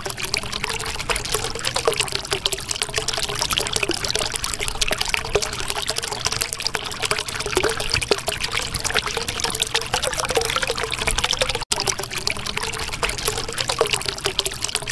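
Water bubbles and gurgles steadily.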